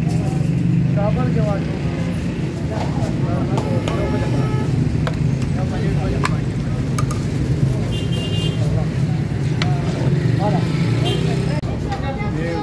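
A metal ladle scrapes and clinks against a metal pot.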